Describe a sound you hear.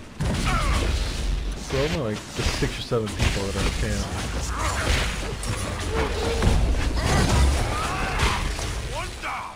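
Weapons clash and strike in combat.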